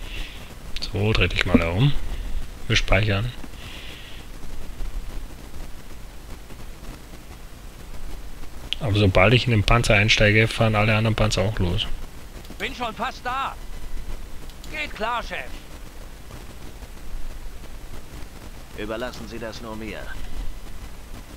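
A young man talks casually into a microphone, in short bursts.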